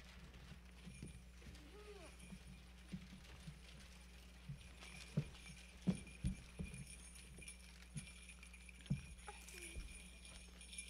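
Children's feet thump and shuffle on a wooden stage.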